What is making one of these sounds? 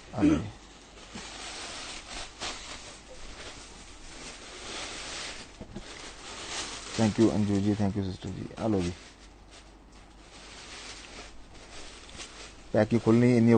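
Fabric rustles softly as cloth is handled.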